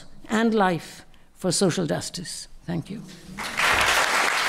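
An elderly woman speaks into a microphone, heard through a loudspeaker in a room.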